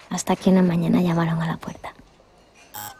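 A young woman speaks nearby.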